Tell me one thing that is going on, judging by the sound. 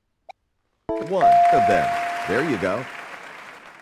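A bright electronic chime rings once.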